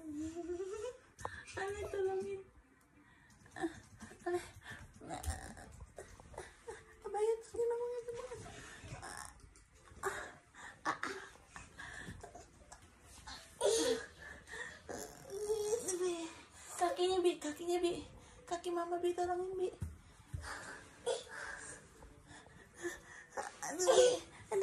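A woman wails and cries out in mock distress close by.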